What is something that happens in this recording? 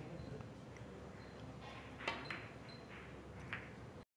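A billiard ball knocks against another ball.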